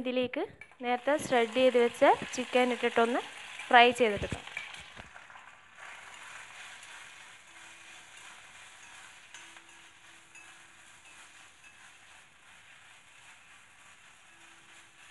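Rice sizzles and crackles in a hot pan.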